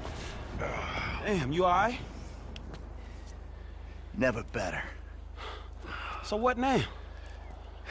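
A man asks questions with concern.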